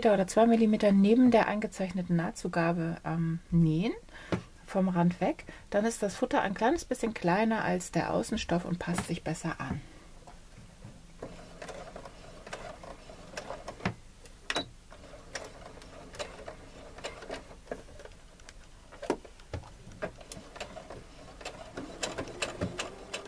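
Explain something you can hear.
A sewing machine runs, stitching fabric.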